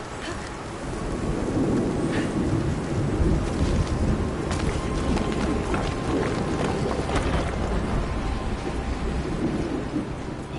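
Water rushes and roars steadily nearby.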